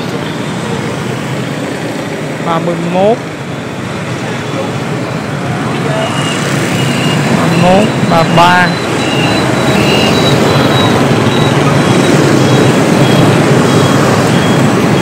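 Many motorbike engines hum and buzz steadily in passing traffic.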